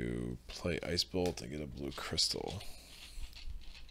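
A playing card is laid down on a table.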